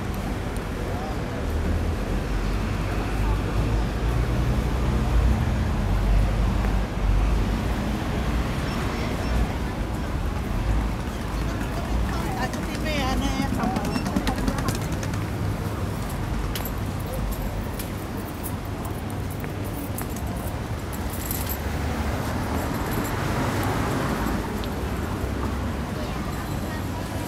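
Steady city traffic hums along a busy street outdoors.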